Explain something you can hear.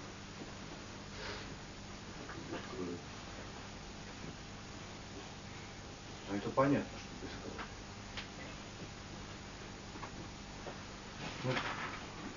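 A man speaks calmly, with long pauses, in a quiet room.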